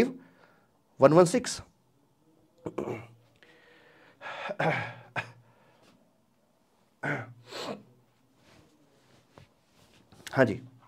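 A middle-aged man talks calmly into a close microphone, in short bursts.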